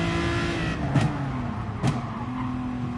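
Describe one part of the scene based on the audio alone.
Gear shifts give sharp clunks as the engine revs change.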